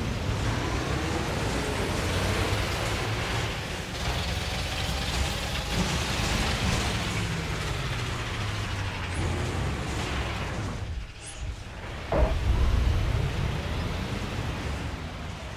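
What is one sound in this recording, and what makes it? A bus engine hums and whines as the bus drives along.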